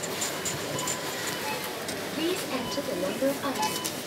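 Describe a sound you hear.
A receipt printer whirs briefly.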